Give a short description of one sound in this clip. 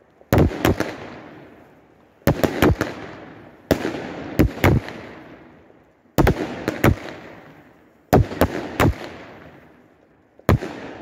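Fireworks crackle and fizzle as they burst.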